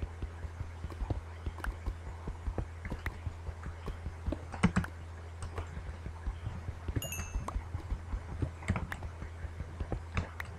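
A pickaxe chips at stone in quick, repeated knocks.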